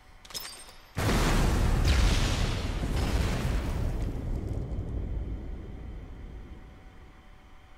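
A fire roars and crackles, slowly fading.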